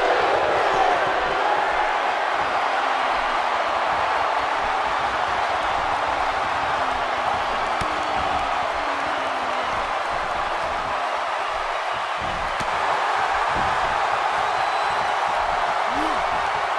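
A large arena crowd cheers and roars.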